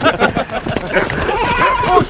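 A horse gallops across the grass.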